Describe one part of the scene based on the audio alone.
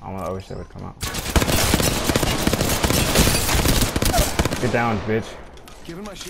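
A rifle fires a burst of loud, rapid shots.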